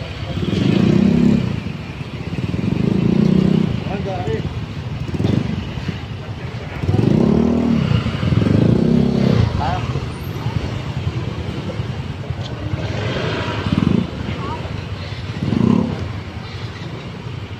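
Motorcycle engines idle and rev up close.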